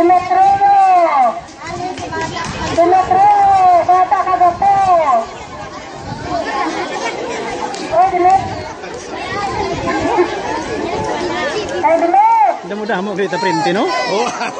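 A large crowd of children sings together loudly outdoors.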